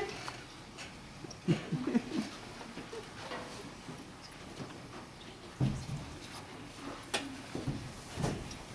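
Children's footsteps shuffle across a hard floor in an echoing room.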